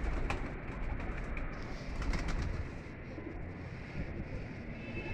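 A pigeon's feathers rustle softly as its wings are handled.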